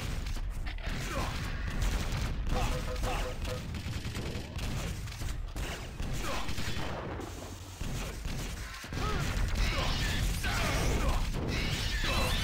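Guns fire in rapid bursts with sharp zaps and blasts.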